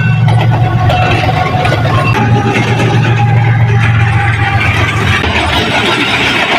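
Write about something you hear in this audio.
A diesel locomotive rumbles as a freight train rolls by.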